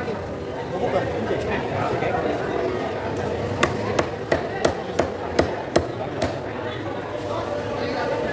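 A crowd chatters in a busy market hall.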